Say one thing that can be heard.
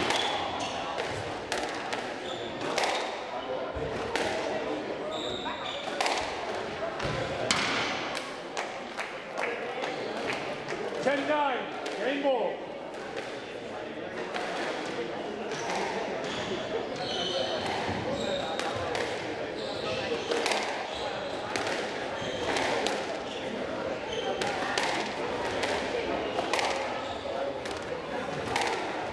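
A squash ball smacks sharply off rackets and walls in a quick rally, echoing in a hard-walled court.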